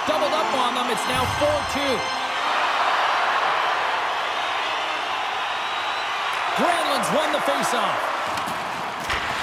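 A large arena crowd roars and cheers steadily.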